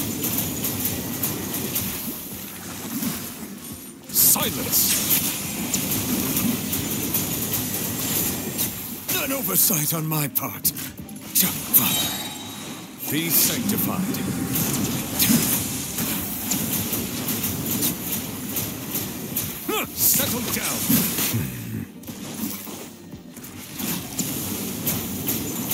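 Crackling magical blasts and sharp strikes clash over and over.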